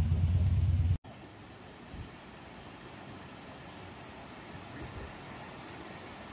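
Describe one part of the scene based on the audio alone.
A small waterfall rushes and splashes in the distance.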